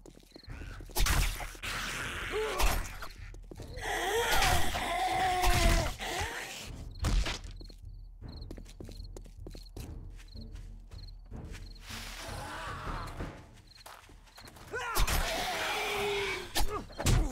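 A zombie snarls and groans up close.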